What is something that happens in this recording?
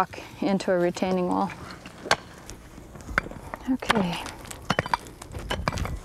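Hand tools scrape and dig into dry dirt.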